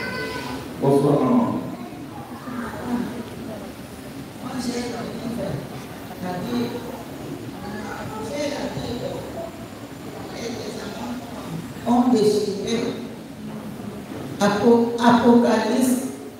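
A crowd of men and women murmur and talk in a large echoing hall.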